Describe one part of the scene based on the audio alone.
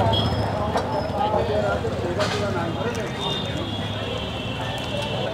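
Street traffic hums steadily in the background.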